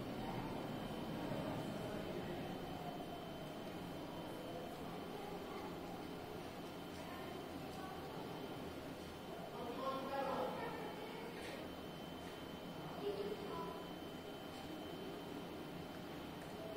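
An elevator hums steadily as it travels in its shaft.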